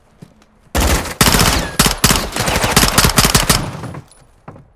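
Rapid gunfire bursts loudly at close range.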